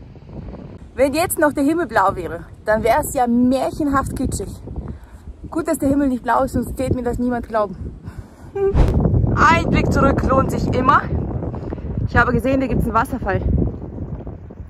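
A young woman talks calmly and cheerfully close to the microphone.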